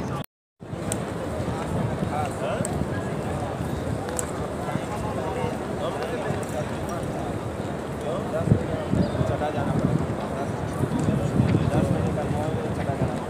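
A crowd of men and women murmurs with many voices outdoors.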